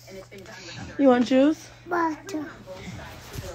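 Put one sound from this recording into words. A young child talks in a high voice close by.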